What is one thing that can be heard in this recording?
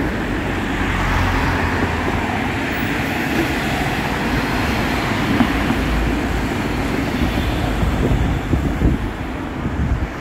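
A tram rumbles past along its tracks.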